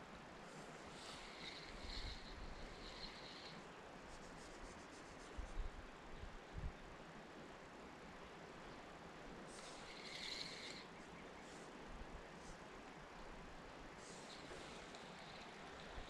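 A fishing reel clicks and whirs as its handle is cranked.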